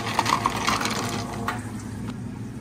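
Ice cubes clatter and rattle into a plastic cup.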